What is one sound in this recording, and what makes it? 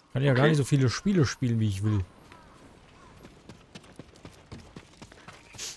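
Footsteps patter on dirt.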